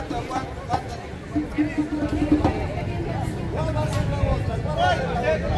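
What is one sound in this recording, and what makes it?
A crowd of men and women chatter outdoors.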